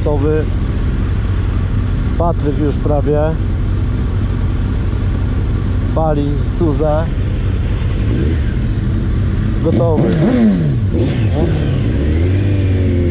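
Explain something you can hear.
A motorcycle engine idles steadily close by.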